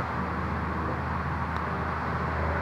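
A golf putter taps a ball with a soft click.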